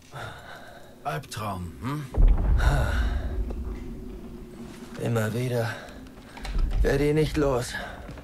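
A young man speaks quietly and wearily.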